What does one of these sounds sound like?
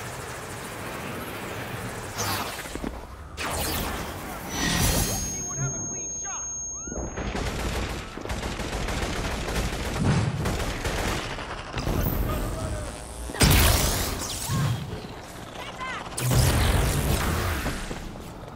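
Energy blasts crackle and boom in bursts.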